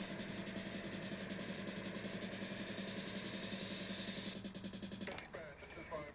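Pinball game music and electronic effects play steadily, then stop.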